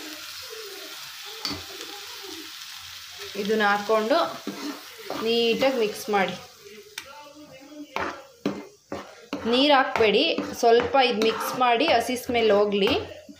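A metal spoon scrapes and stirs in a frying pan.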